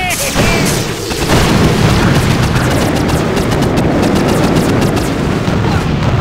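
Laser turrets fire with sharp zapping bursts.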